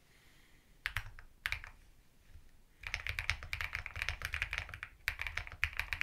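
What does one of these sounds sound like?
Keys on a mechanical keyboard clack rapidly as someone types, close by.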